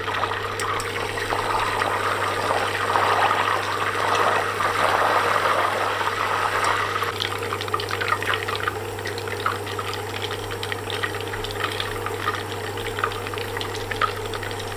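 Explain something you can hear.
Butter sizzles and hisses in a hot pan.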